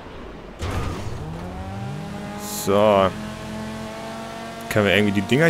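A racing car engine roars and revs at high speed.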